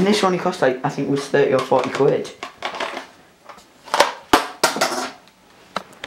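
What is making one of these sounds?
Plastic clicks and knocks as an object is handled.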